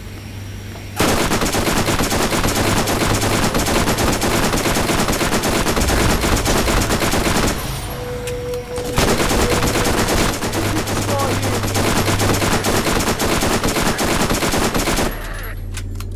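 A machine gun fires rapid bursts at close range.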